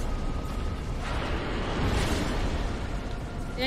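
Flames roar and burst loudly.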